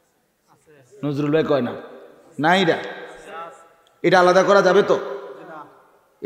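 A man preaches with animation into a microphone, his voice echoing through loudspeakers.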